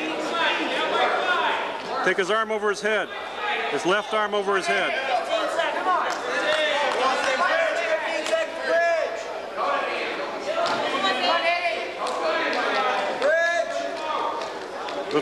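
A man shouts close by.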